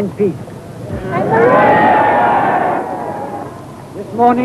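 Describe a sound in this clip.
A crowd cheers loudly outdoors.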